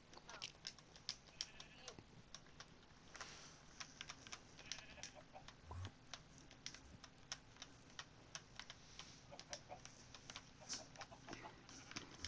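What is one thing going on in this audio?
Soft clicks sound as items are moved around in a game menu.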